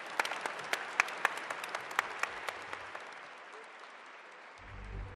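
A crowd applauds in a large hall, then fades.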